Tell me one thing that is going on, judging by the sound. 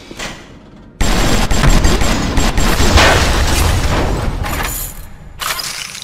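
An explosion booms and crackles with falling debris.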